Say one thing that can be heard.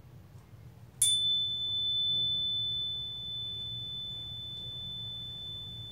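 A steady high test tone plays through loudspeakers.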